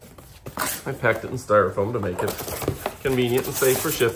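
Cardboard scrapes and rustles as a box flap is pulled open.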